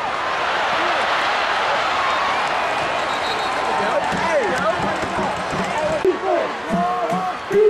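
A large stadium crowd roars and cheers outdoors.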